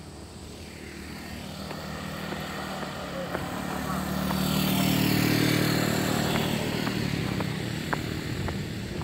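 Motorcycle engines roar closer, rise and fade as the bikes pass by.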